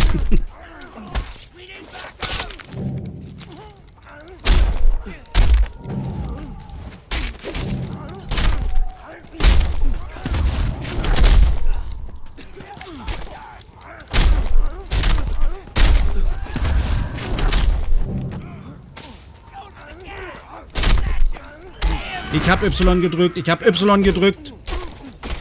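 Heavy punches and blows land with loud thuds in quick bursts.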